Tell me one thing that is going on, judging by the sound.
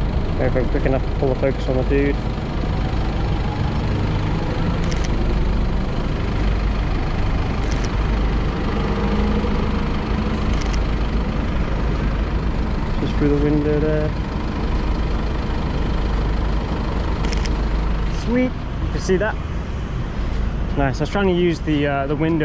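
Traffic rumbles steadily along a city street.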